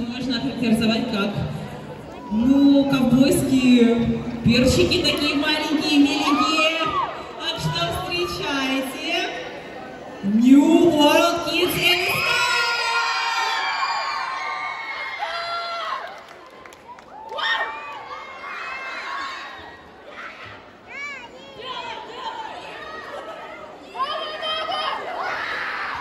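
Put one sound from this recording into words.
Pop music with singing plays loudly over loudspeakers in a large echoing hall.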